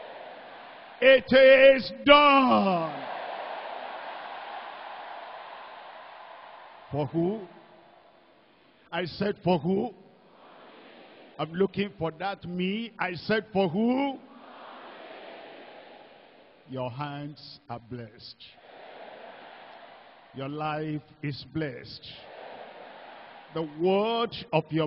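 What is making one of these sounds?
A large crowd murmurs prayers.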